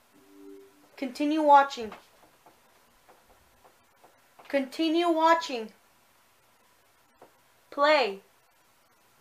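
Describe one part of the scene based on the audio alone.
A young woman speaks close by, in short expressive bursts.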